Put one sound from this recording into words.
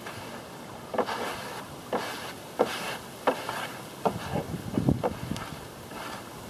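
A brush strokes across a wooden panel.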